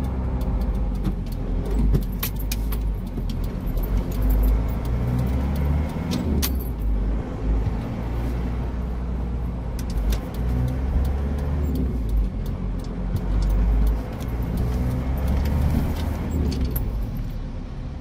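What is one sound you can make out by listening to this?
A car rumbles along the road, heard from inside the cabin.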